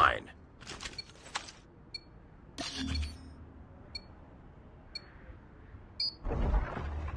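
A short electronic beep sounds once each second, counting down.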